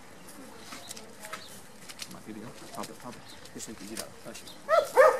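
Men talk quietly nearby, outdoors.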